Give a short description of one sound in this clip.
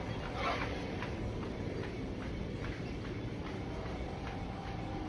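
A spaceship's engines roar steadily.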